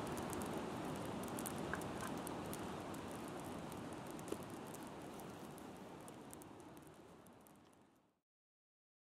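A campfire crackles and pops outdoors, slowly fading away.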